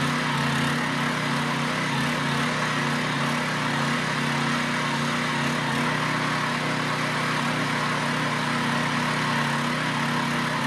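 A small petrol tiller engine runs steadily with a loud buzzing drone.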